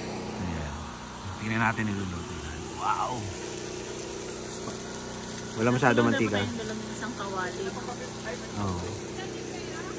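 Meat sizzles in a frying pan.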